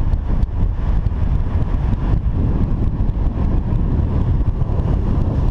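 Strong wind buffets and roars against the microphone outdoors.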